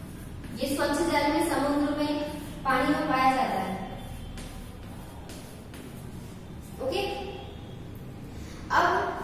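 A young woman speaks clearly and slowly nearby.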